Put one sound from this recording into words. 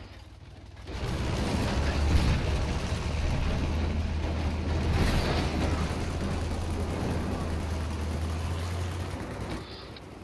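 A boat engine drones with a low, steady hum.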